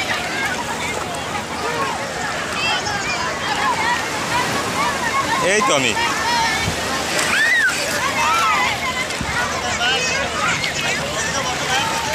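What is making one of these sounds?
A young boy splashes in shallow water.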